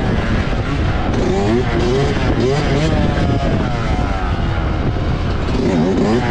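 A dirt bike engine revs up and down loudly close by.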